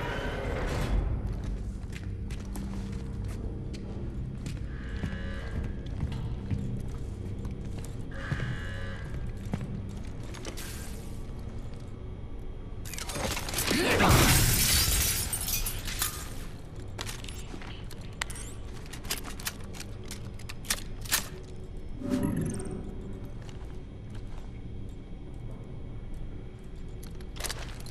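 Heavy footsteps tread slowly on a hard floor.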